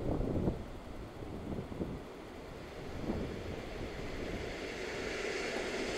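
An electric train approaches along the tracks, its rumble growing louder.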